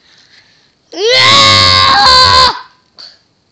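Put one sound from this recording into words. A man shouts loudly right beside the microphone.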